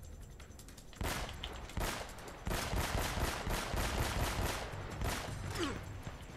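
Gunshots fire in rapid bursts, echoing in a large stone hall.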